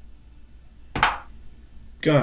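A short wooden click sounds as a chess move is played.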